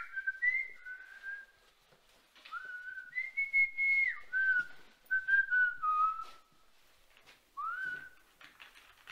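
A man whistles a slow tune close by.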